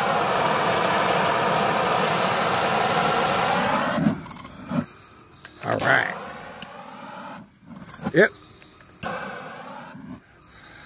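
A gas torch roars steadily, stops, then roars again briefly.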